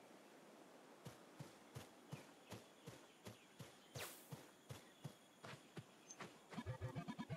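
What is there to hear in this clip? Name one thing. Quick footsteps patter along as a game character runs.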